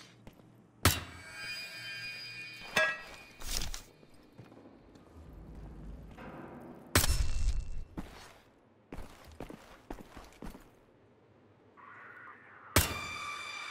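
A pistol fires loud, sharp shots that echo briefly.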